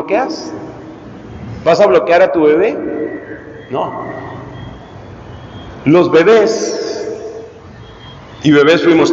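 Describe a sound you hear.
A man speaks calmly into a microphone over a loudspeaker, with pauses, in an echoing hall.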